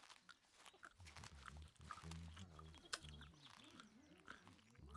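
Sheep murmur and grumble in low voices.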